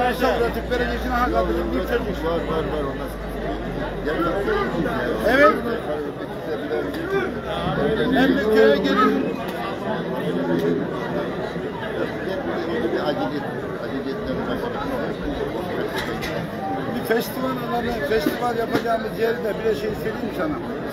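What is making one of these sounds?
A large outdoor crowd murmurs and chatters throughout.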